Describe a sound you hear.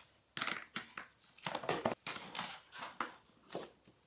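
A case lid thumps shut.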